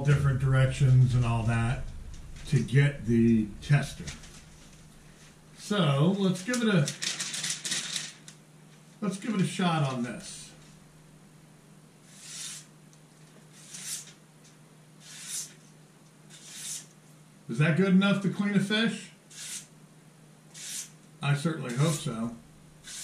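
A middle-aged man talks calmly into a close microphone.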